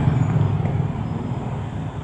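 A motorcycle engine putters close by.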